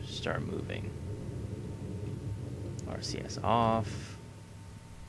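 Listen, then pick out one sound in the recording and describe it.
Rocket engines roar with a low rumble.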